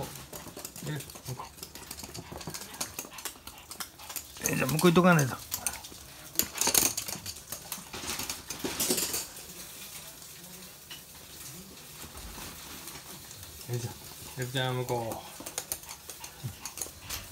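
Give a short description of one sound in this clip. Small dogs' claws patter and skitter across a hard floor as they run.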